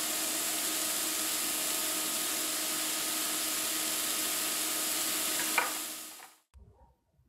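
Patties sizzle on a hot pan.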